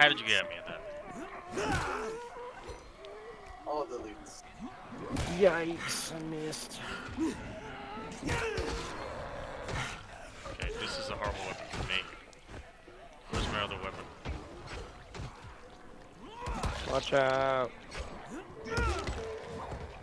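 Zombies growl and groan nearby.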